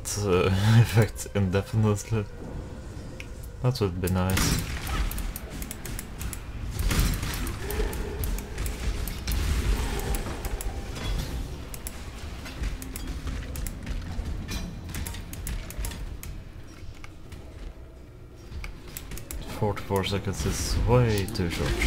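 Magic spells crackle and burst over and over.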